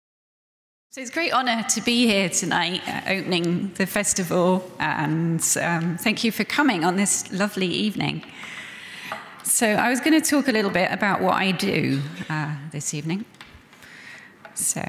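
A woman speaks calmly into a microphone in a large echoing room.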